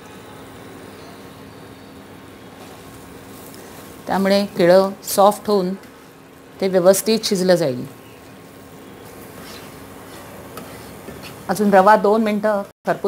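A spatula scrapes and stirs a thick mixture in a pan.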